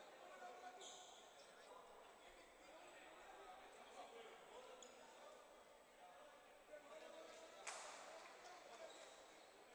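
A crowd chatters and murmurs in a large echoing gym.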